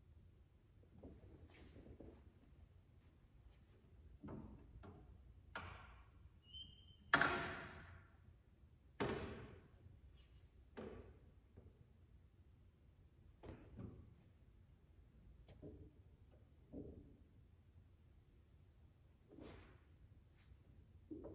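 A grand piano plays loud, scattered chords that ring out and fade in a large, echoing hall.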